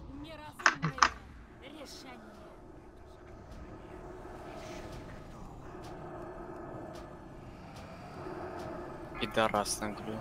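Fantasy battle sounds of spells and clashing weapons rise in a busy mix.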